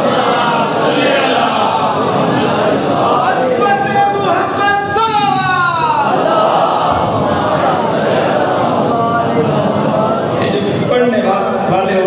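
A man speaks with passion through a microphone and loudspeakers, in a room with some echo.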